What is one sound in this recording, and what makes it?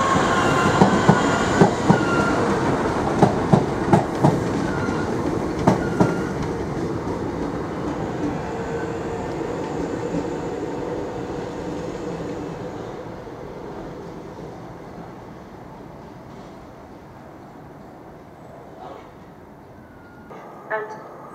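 A train rolls away along the tracks and its rumble slowly fades.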